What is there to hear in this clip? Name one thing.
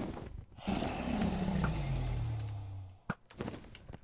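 A dragon growls with a deep, falling roar.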